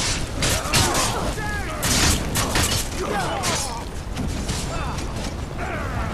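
Metal weapons clash in a fight.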